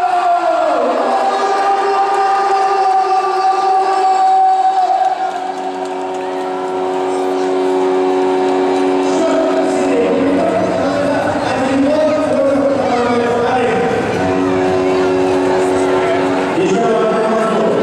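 A crowd cheers and claps in a large echoing arena.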